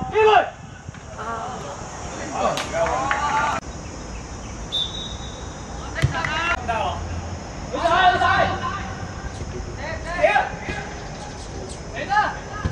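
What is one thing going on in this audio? Young boys shout to each other across an open field.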